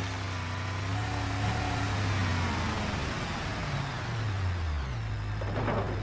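A car engine roars and drops in pitch.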